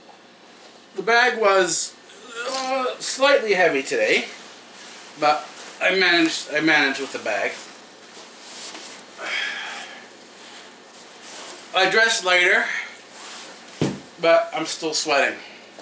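A man talks casually, close by.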